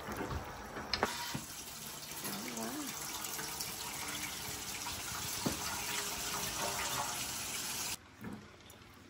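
Water bubbles at a rolling boil in a large pot.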